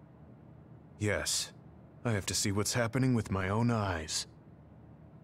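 A man speaks calmly in a deep voice, heard through a game's sound.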